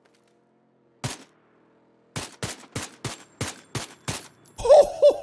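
Rifle shots crack in quick succession.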